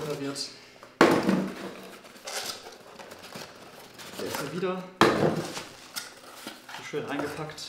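A cardboard box rustles and scrapes as it is handled.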